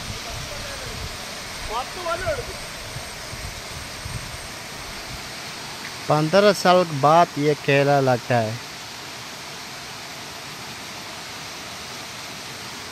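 A small stream trickles softly over stones.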